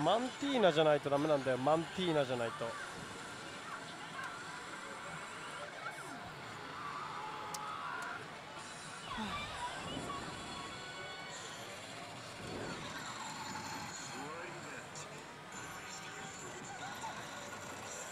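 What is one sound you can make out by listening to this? Many gaming machines chime and jingle around.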